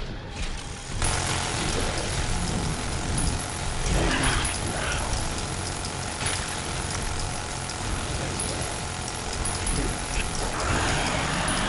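Gunshots bang out in quick bursts.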